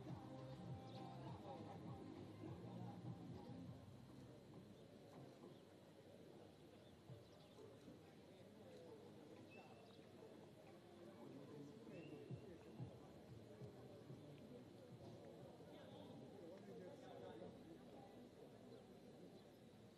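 Men and women chatter nearby outdoors.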